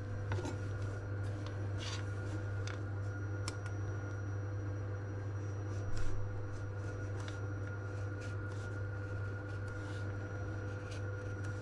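A knife slices through a vanilla bean on a wooden board.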